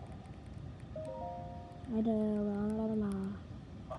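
A game console plays a short melodic tune through its small speaker.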